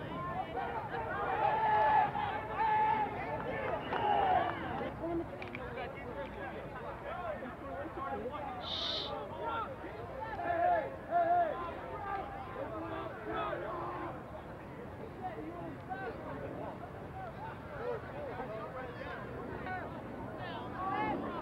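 A crowd of spectators and players shouts and cheers outdoors.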